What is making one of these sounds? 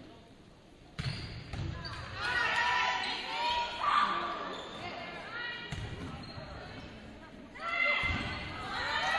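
A volleyball is struck by hand with sharp thumps in an echoing gym.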